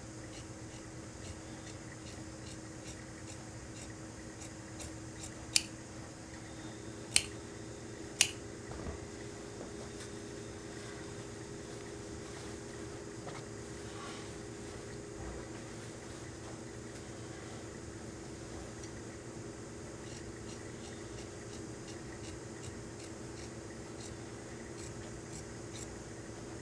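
Scissors snip through thick fabric with soft, repeated crunches.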